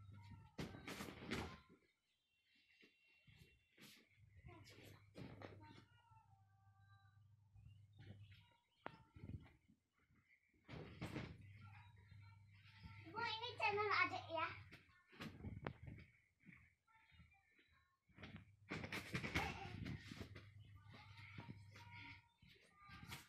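Young children shout and squeal playfully up close.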